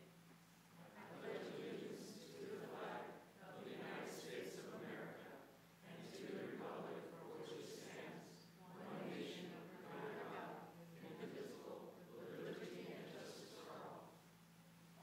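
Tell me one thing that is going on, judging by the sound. A group of men and women recite together in unison, slightly echoing.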